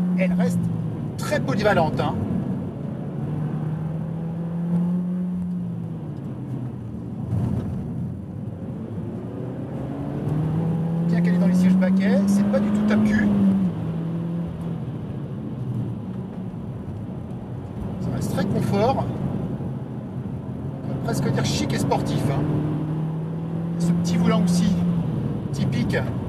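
A car engine drones and revs up and down.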